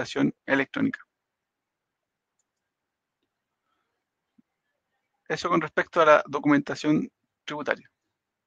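A man speaks calmly through an online call microphone, with pauses.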